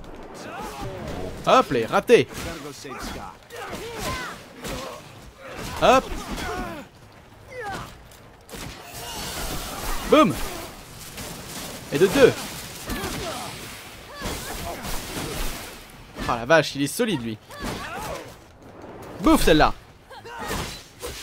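Sharp blows and energy blasts crack and whoosh in a close fight.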